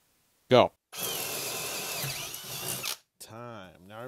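A power drill whirs steadily as it bores into wood.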